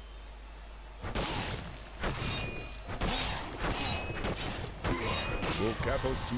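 Blows thud and clash in a fight.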